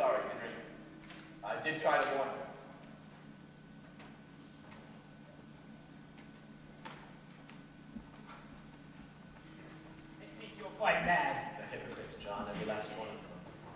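A young man speaks clearly in a large hall, pausing between lines.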